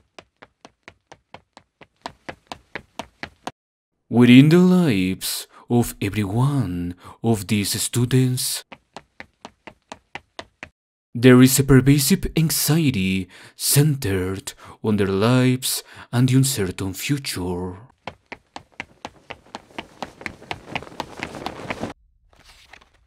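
Quick footsteps patter as a girl runs.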